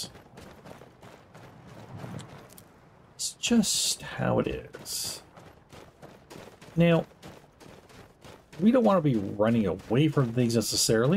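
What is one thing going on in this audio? Footsteps tread softly on a dirt path.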